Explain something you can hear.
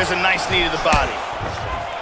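A kick lands with a heavy smack.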